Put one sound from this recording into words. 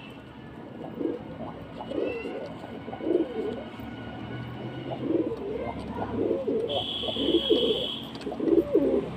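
Pigeons coo in low, throaty calls close by.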